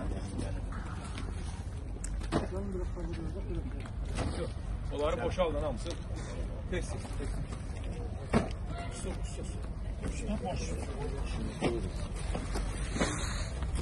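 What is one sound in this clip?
Boxes and bundles thump as men unload a van.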